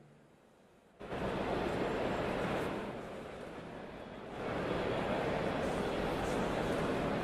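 Footsteps and bustle of passengers fill a large echoing station.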